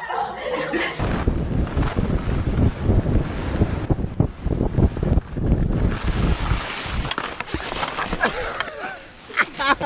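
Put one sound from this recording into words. Wind buffets past a skier.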